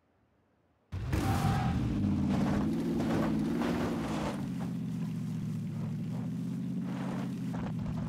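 A car engine starts and runs, revving as the car drives off.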